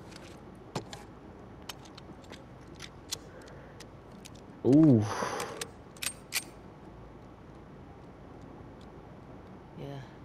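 A pistol's metal parts click and clack as they are handled.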